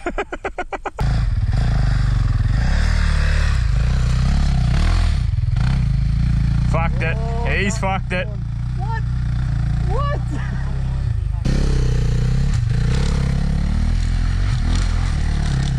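A motorbike engine rumbles steadily close by.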